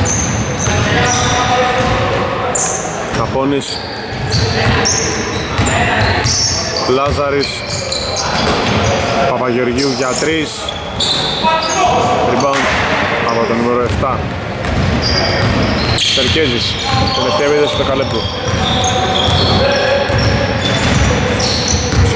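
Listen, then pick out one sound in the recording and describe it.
A basketball bounces on the floor with hollow thuds.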